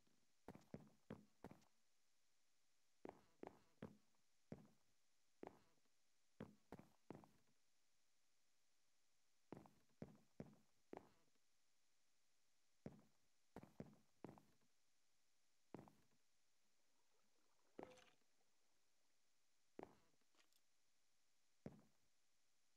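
Footsteps thud on a wooden floor at an uneven pace.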